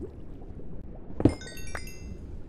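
A pickaxe chips at stone and the block breaks with a crack.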